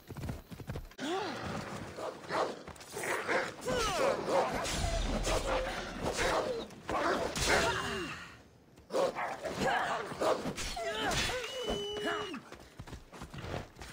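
Wolves snarl and growl.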